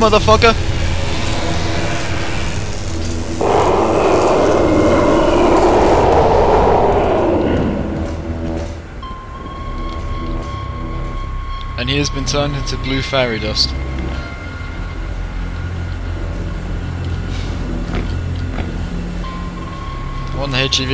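A steady low hum drones throughout.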